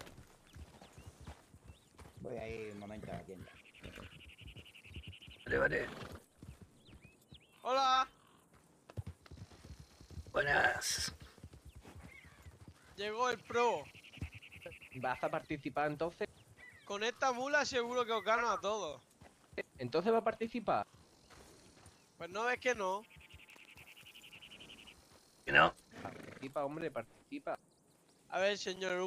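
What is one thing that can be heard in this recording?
Horses' hooves thud softly on grass.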